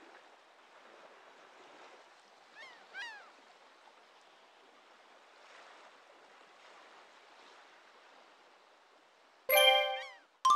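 Soft, cheerful game music plays quietly.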